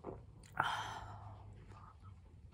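A young woman sighs with a long breathy exhale close by.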